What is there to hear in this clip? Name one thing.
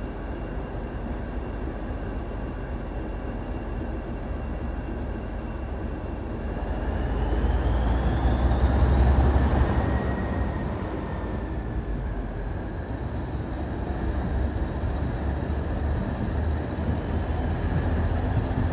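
A train rumbles steadily along the tracks, heard from an open window.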